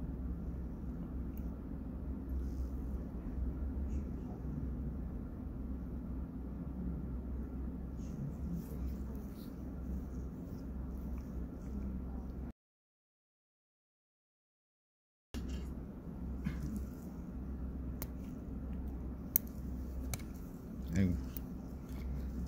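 Metal tweezers click faintly against each other.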